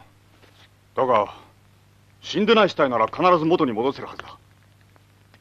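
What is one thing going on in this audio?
Another man speaks calmly a short distance away.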